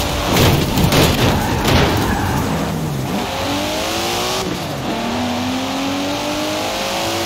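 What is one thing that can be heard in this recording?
A sports car engine revs hard and climbs through the gears.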